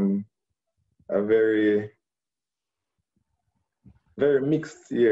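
A young man speaks calmly and close, in short phrases with pauses, through a phone microphone.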